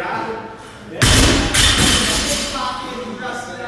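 A loaded barbell crashes onto the floor and bounces with an echo.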